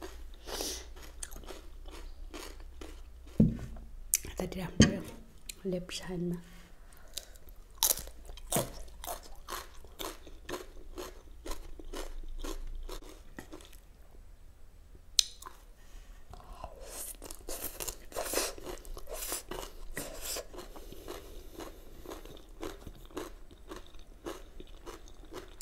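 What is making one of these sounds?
A young woman chews and slurps food loudly, close up.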